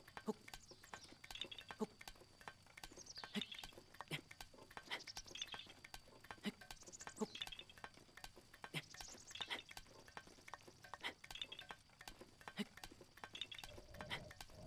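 Hands scrape and grip on a pole while climbing.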